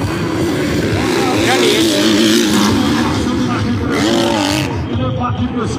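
A motorcycle engine revs loudly.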